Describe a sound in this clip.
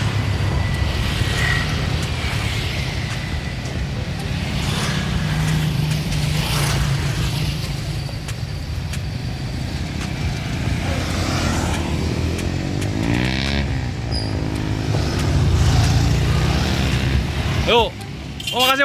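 A van engine hums steadily nearby.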